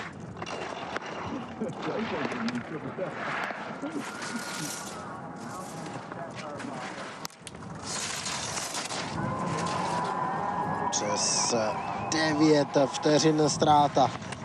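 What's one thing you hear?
Skis scrape and hiss across icy snow in fast turns.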